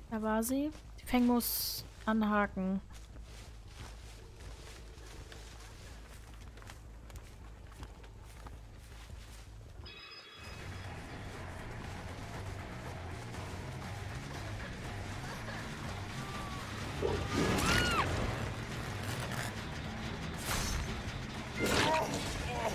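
Corn stalks rustle as heavy footsteps push through them.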